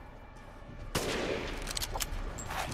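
A rifle fires a loud shot that echoes.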